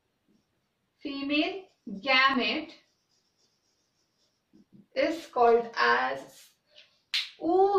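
A young woman speaks calmly close by, explaining.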